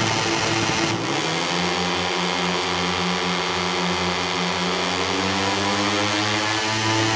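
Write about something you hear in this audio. A motorcycle engine roars and climbs steadily through the gears.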